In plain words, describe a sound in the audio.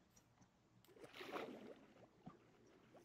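Something splashes into water.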